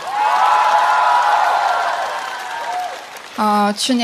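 Audience members clap their hands.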